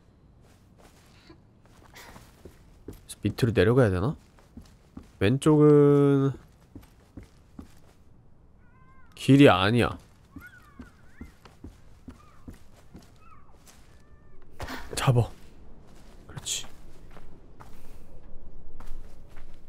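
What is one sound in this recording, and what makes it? Light footsteps patter on a hard floor.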